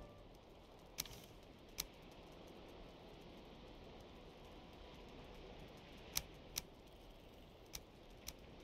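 Menu clicks tick sharply several times.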